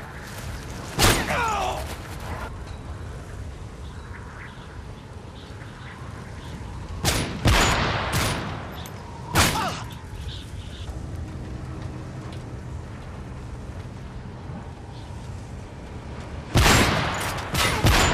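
A sniper rifle fires single loud shots that echo.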